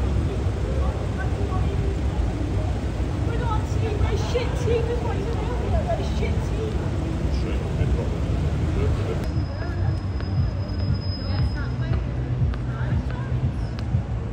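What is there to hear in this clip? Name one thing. Street traffic rumbles steadily outdoors.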